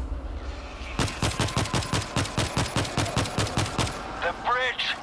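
A rifle fires a rapid series of shots.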